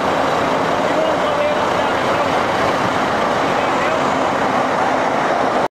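A bulldozer engine idles with a steady loud rumble close by.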